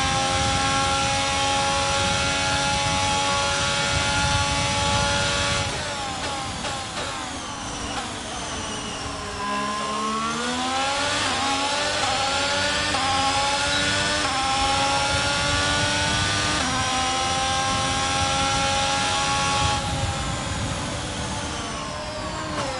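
A racing car engine screams at high revs, dropping in pitch when braking and rising again as it speeds up.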